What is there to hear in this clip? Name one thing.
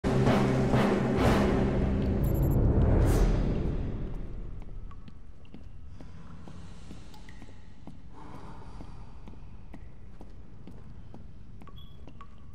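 Footsteps thud steadily on wooden boards in an echoing tunnel.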